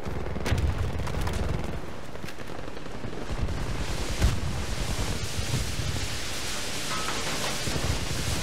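Explosions boom and rumble close by.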